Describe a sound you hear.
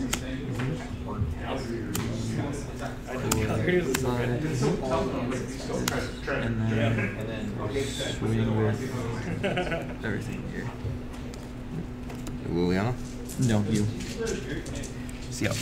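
Playing cards slide and tap on a table mat.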